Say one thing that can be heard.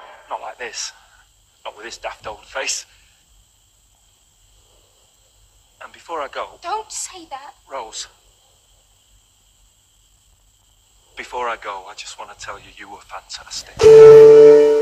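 A man speaks close by in a sly, gleeful tone.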